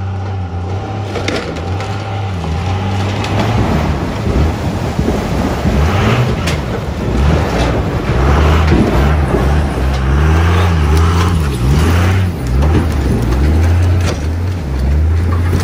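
A diesel truck engine revs hard as the truck drives off through mud.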